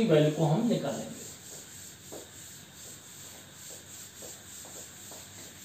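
A cloth rubs on a chalkboard.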